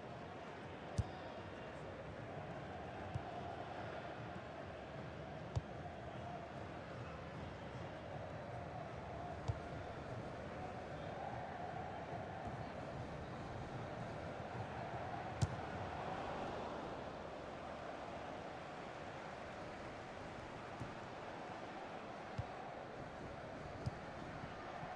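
A football is kicked with sharp thuds now and then.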